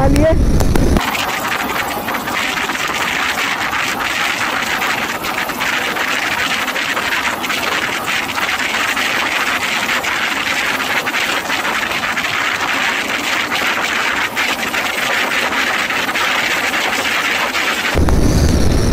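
Wind rushes loudly past a fast-moving rider.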